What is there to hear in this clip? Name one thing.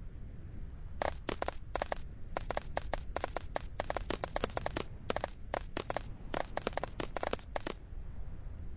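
Footsteps crunch quickly on gravel.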